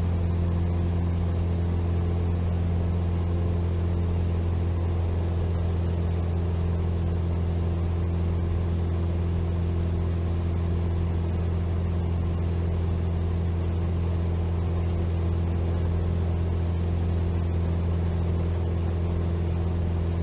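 A small propeller plane's engine drones steadily, heard from inside the cabin.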